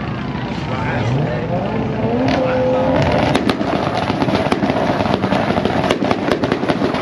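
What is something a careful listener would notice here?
A race car engine revs and roars.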